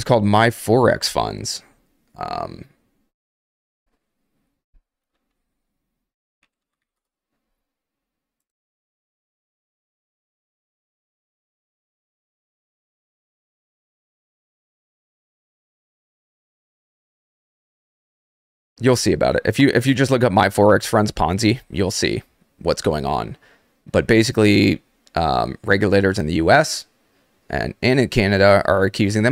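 A man speaks into a close microphone with animation, in short bursts with pauses.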